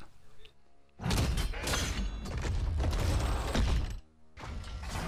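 A wooden crate lid creaks and bangs open.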